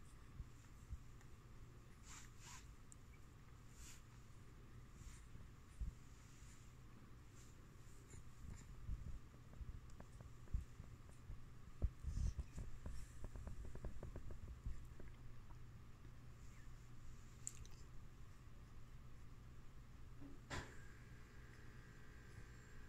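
A baby coos and babbles softly nearby.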